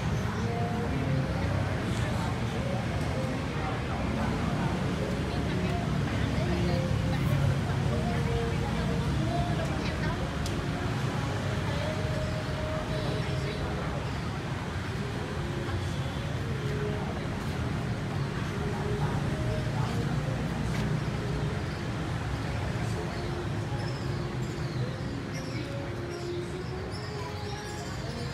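Men and women chat in a lively crowd nearby, outdoors.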